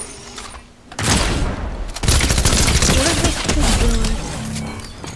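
Rapid gunshots crack close by.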